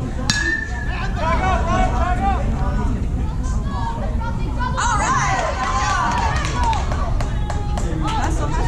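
A crowd of spectators cheers and shouts with excitement.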